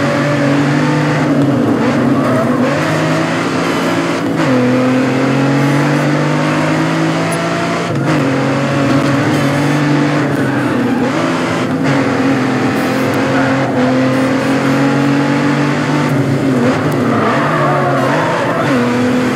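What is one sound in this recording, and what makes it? Tyres screech as a car slides through a corner.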